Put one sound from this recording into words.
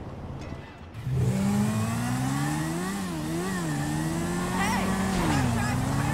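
A motorcycle engine starts and revs loudly, rising and falling in pitch.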